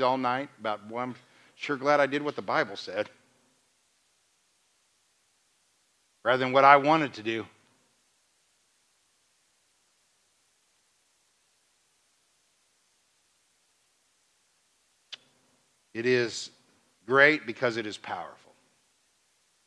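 A man speaks calmly through a microphone in a large hall, pausing between phrases.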